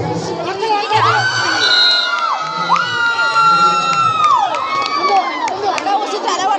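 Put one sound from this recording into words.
Young women shout loudly and excitedly during a game.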